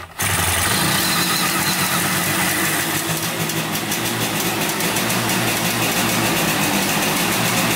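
A small motorcycle engine idles with a steady, rapid putter close by.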